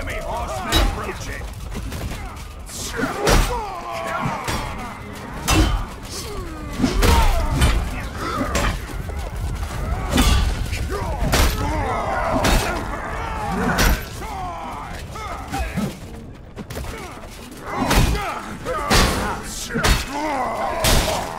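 Swords and weapons clash and strike with sharp metallic hits.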